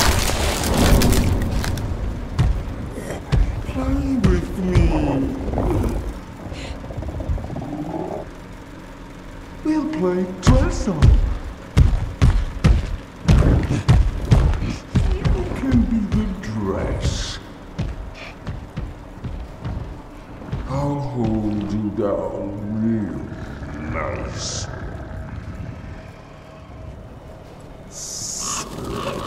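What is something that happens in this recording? Footsteps run quickly over dirt and wooden planks.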